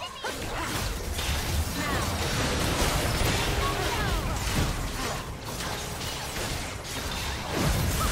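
Game spell effects whoosh, zap and clash in a fast fight.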